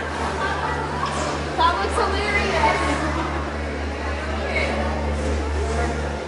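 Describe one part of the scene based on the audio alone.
A crowd of shoppers murmurs and chatters in a large echoing hall.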